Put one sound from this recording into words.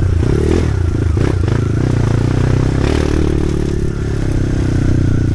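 A dirt bike engine drones and revs up close.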